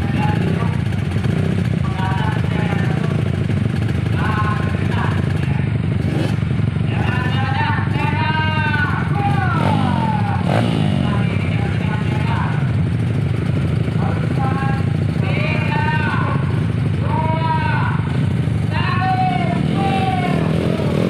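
Several dirt bike engines idle.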